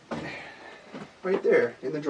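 Plastic packaging rustles in hands.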